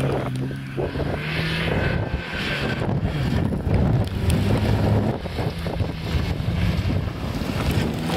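Rally car engines roar and rev hard close by.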